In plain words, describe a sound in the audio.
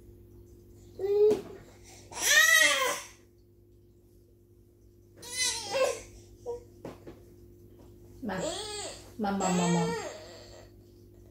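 A baby squeals and babbles loudly nearby.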